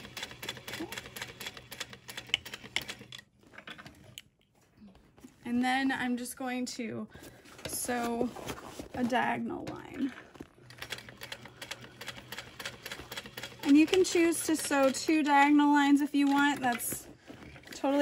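A sewing machine runs, stitching with a rapid, steady clatter.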